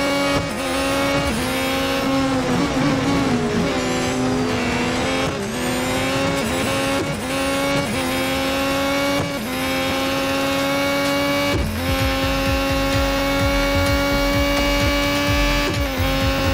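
A racing car engine whines at high pitch, dropping briefly with each gear change.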